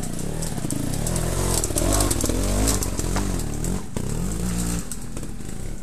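A dirt bike engine roars close by, revving hard.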